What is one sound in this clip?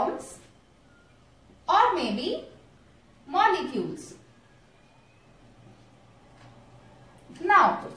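A woman speaks calmly, close by, in short phrases.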